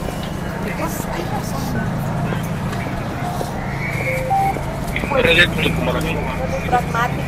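Several men and women talk over one another close by.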